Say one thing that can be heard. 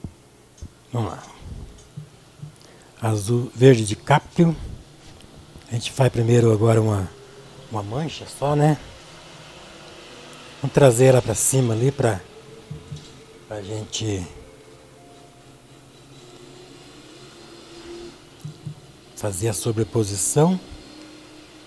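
A man talks calmly into a microphone, pausing between phrases.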